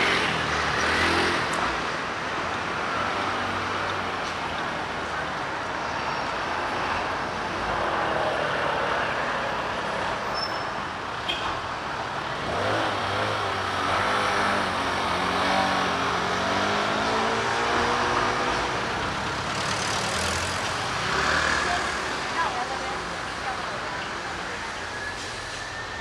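Traffic rumbles steadily on a busy street outdoors.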